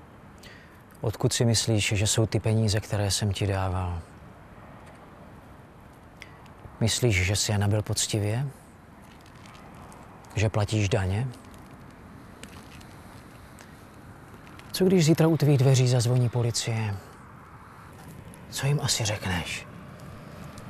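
Two men talk calmly in turn, close by.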